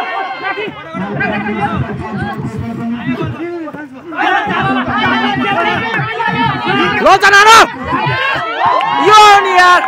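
A ball is struck with hands during play.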